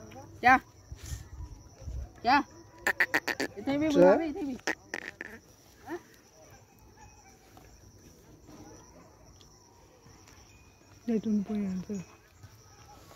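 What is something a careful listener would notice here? A partridge calls with sharp, rising cries, loud and close.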